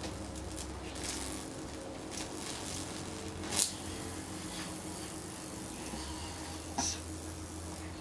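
Electric sparks crackle and snap in short bursts.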